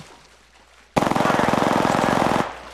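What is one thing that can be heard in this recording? A rifle fires in a rapid, steady burst.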